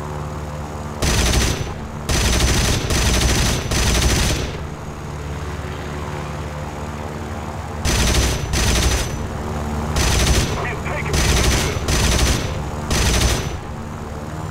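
A fighter plane's guns fire in bursts.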